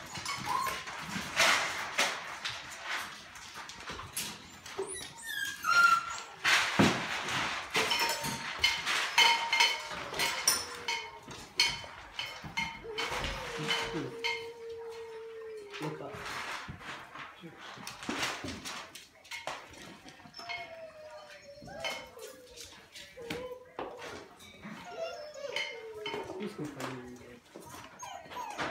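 Puppies scuffle and scratch about in a pen.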